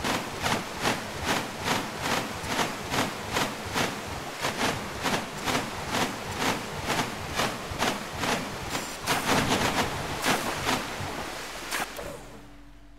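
Water splashes in quick, even strokes as a swimmer moves through it.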